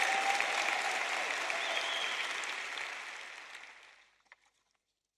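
A large crowd applauds and the applause fades away.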